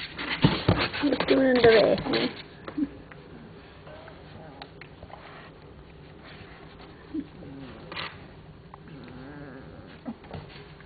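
Puppies whine and squeal close by.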